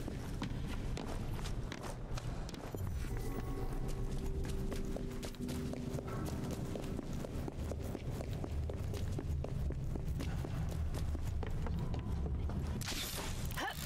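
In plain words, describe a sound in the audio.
Footsteps patter quickly on a hard floor that echoes.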